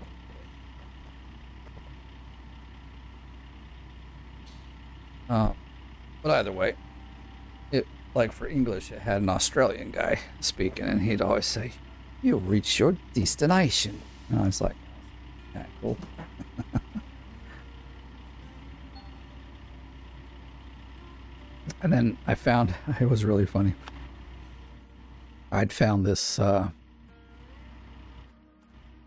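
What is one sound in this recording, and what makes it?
A diesel engine idles with a low, steady hum.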